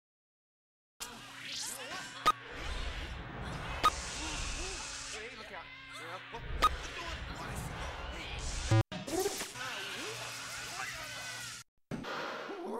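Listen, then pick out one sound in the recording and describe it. Electronic game sound effects zap and clatter.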